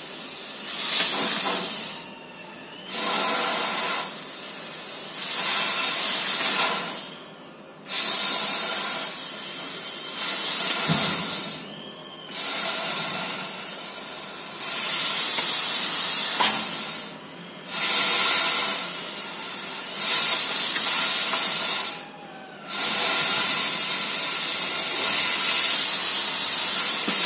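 A laser cutter hisses in loud bursts, stopping briefly between cuts.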